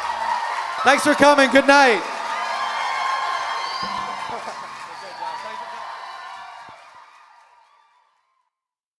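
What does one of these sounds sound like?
A crowd cheers and shouts loudly in a large hall, then fades away.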